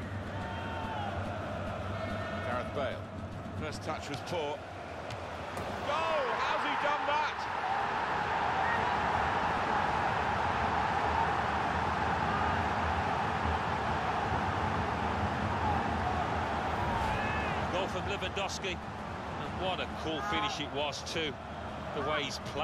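A large stadium crowd roars and cheers, swelling loudly for a while before settling.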